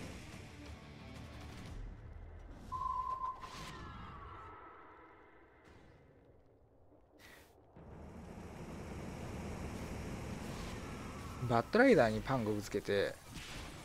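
Magic spell effects whoosh and chime.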